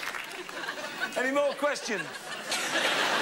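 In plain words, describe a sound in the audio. A man speaks with amusement through a microphone.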